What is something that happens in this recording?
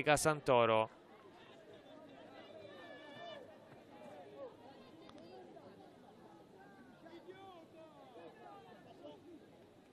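Women call out across an open field in the distance.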